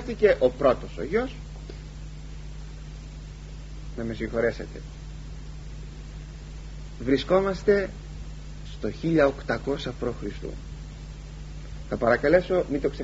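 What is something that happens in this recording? An elderly man speaks calmly in short phrases with pauses, close to a microphone.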